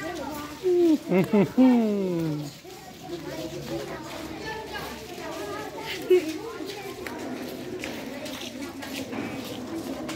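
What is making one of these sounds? Several children chatter in the background outdoors.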